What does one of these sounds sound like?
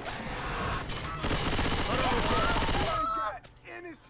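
An automatic gun fires in rapid bursts.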